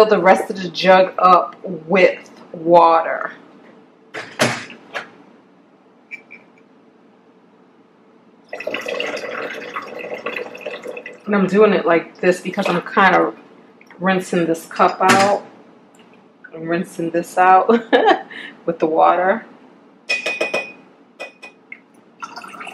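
Water pours and splashes into a container.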